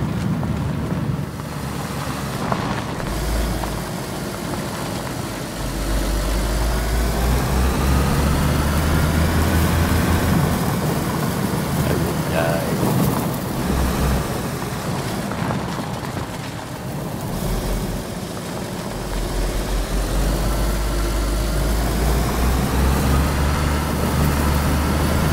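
An engine drones and revs up and down as a vehicle drives.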